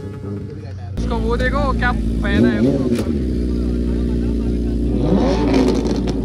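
A motorcycle engine idles with a steady rumble.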